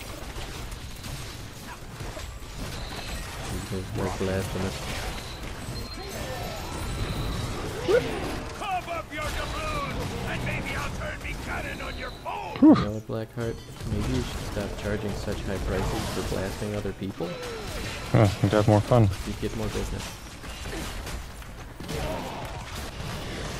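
Magic spells burst and crackle in a battle.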